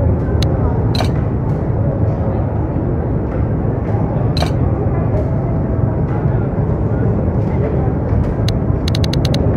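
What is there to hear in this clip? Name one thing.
Short electronic menu blips click as a game menu is scrolled.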